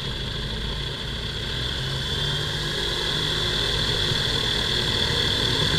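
A small aircraft engine idles nearby with a steady, buzzing drone.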